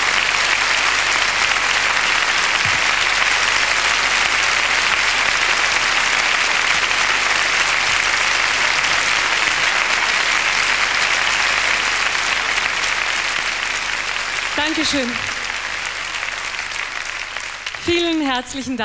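A large audience applauds loudly, and the applause slowly dies down.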